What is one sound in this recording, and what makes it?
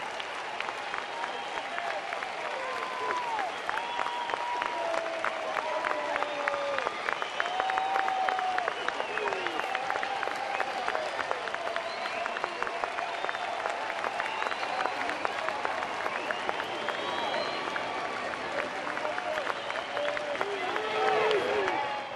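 A crowd claps and cheers in a large outdoor stadium.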